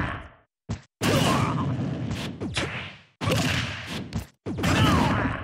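Heavy punches land with loud, booming thuds.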